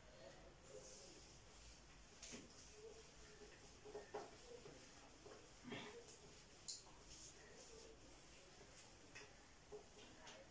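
A board eraser rubs and squeaks across a whiteboard.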